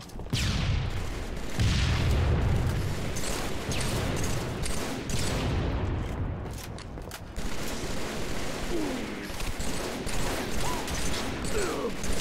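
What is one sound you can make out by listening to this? A rifle fires loud shots that boom and echo.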